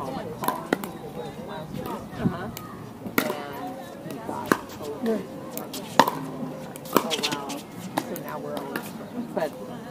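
Paddles hit a plastic ball with sharp pops, outdoors.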